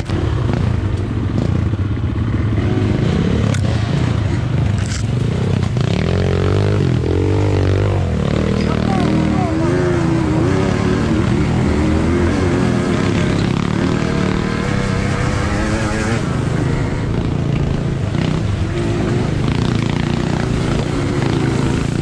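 A two-stroke enduro motorcycle revs hard over rough ground.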